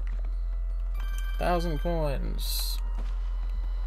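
Coins jingle and chime in quick succession.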